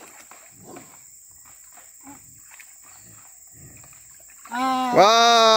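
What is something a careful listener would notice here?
A dog splashes through shallow water.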